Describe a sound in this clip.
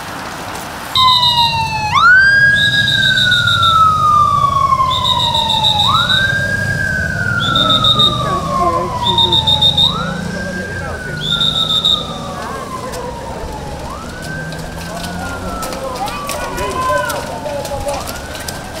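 A siren wails over and over, rising and slowly falling.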